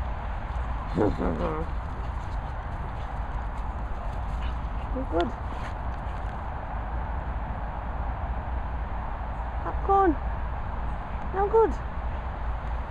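A squeaky toy squeaks in short bursts as a dog chews it.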